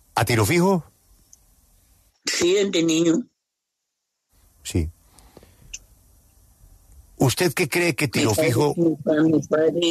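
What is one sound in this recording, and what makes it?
An elderly man speaks in short bursts with pauses.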